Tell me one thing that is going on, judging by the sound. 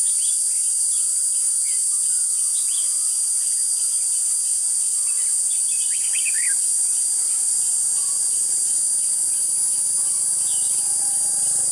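Birds chirp in short, sharp calls among the trees.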